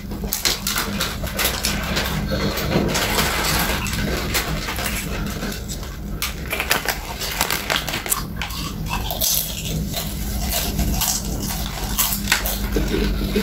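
Crisps crackle and rustle as hands pick through them.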